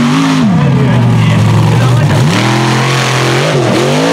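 A truck crashes down onto a car with a loud crunch.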